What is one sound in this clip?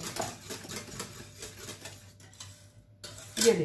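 A whisk scrapes and clinks against a metal pan.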